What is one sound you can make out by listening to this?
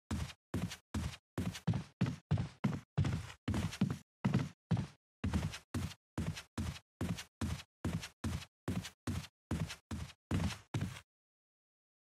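Footsteps thud quickly on wooden stairs and floors.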